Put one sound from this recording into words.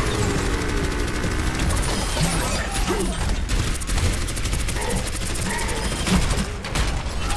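A game weapon fires rapid electric bursts.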